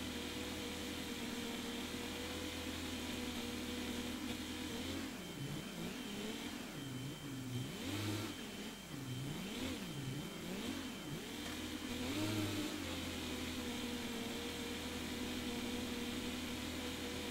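A tractor engine drones, its pitch rising and falling.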